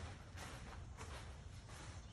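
A bat swishes through the air.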